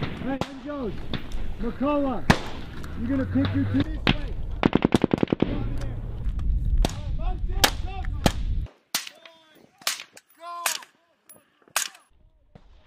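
Rifles fire sharp shots, sometimes in rapid bursts.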